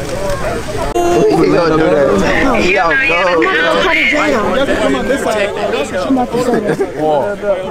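A young man speaks loudly with animation over a murmuring crowd.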